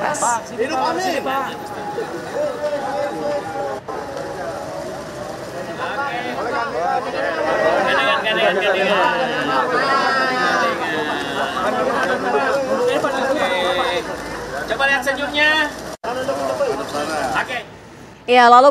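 A crowd of men talk and call out over each other outdoors.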